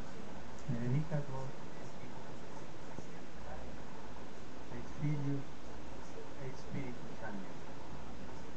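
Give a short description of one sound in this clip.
An elderly man speaks slowly into a microphone, heard through loudspeakers.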